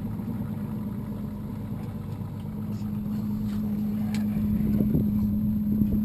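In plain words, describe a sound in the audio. A boat engine idles with a steady low hum.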